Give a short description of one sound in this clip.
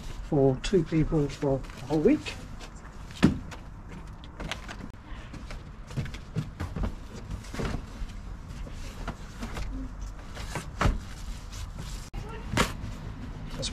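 A bag bumps and rustles against a van's interior.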